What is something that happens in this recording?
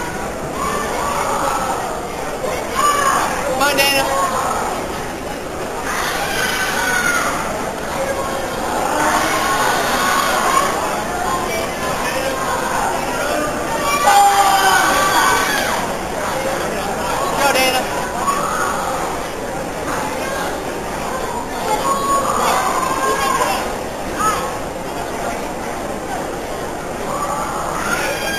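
A young girl shouts sharp cries.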